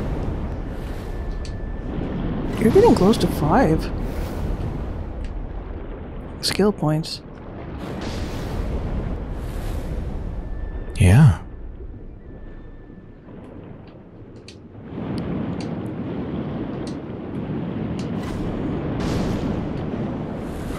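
Muffled water rumbles and swirls all around, as if heard underwater.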